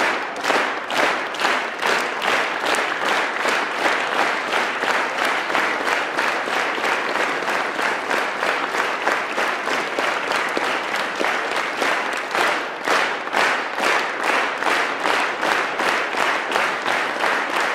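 A large group of young people sings together in a big echoing hall.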